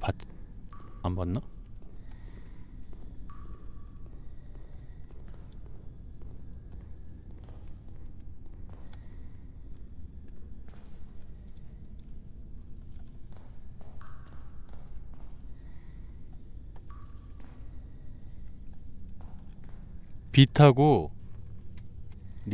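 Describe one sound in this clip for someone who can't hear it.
Footsteps tap slowly on a hard tiled floor.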